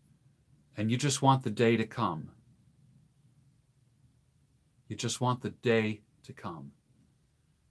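An older man speaks calmly and close to a microphone, as if on an online call, with pauses.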